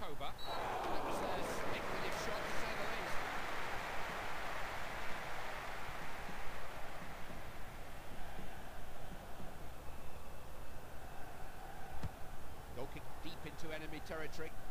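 A large crowd roars in a stadium, swelling and then fading.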